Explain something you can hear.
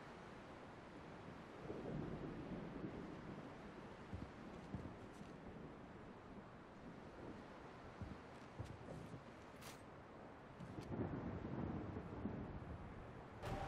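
Waves lap gently against a shore.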